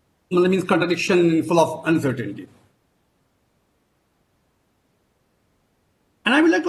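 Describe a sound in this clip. A middle-aged man speaks calmly through a microphone over an online call.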